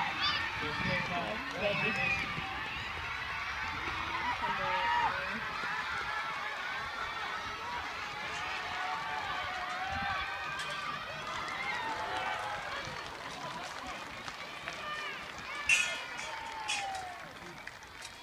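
A crowd cheers and shouts in an open outdoor space.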